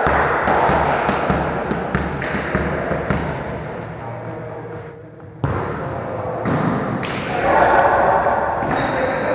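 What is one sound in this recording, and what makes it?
A volleyball is struck with sharp slaps in an echoing hall.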